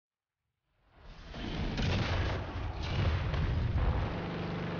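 A shell explodes with a loud, rumbling boom.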